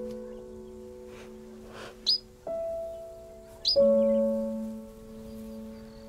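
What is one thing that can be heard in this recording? A small bird chirps and sings close by.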